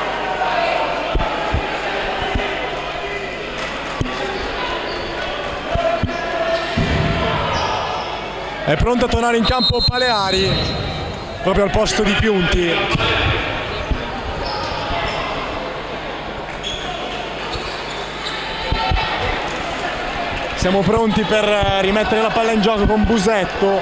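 A basketball bounces on a wooden court.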